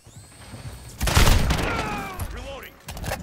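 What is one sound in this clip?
Gunfire rattles in a loud rapid burst.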